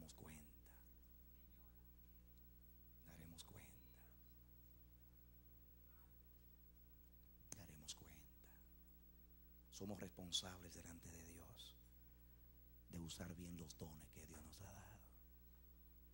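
A man speaks slowly through a microphone, with long pauses.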